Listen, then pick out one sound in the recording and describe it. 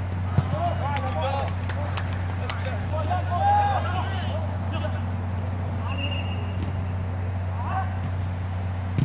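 Young men shout to each other at a distance during a football game outdoors.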